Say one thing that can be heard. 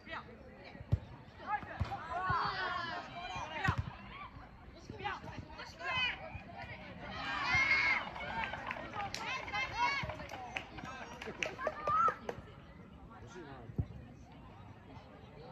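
Young players shout and call out to each other across an open field outdoors.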